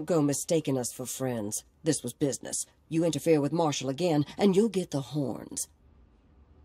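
A middle-aged woman speaks sharply and angrily, close up.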